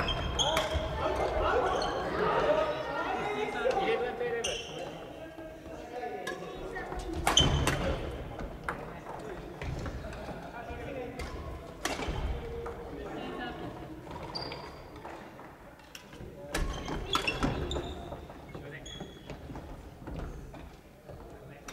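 Badminton rackets strike shuttlecocks with sharp pops in a large echoing hall.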